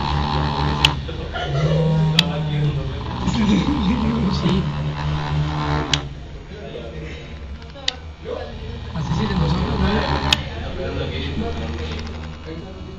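A small loudspeaker hums with a low, steady tone.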